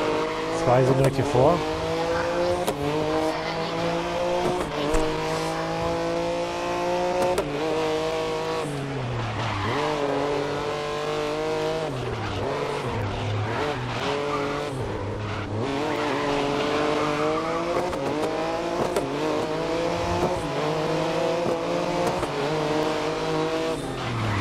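A racing prototype car's engine screams up through the gears under full throttle.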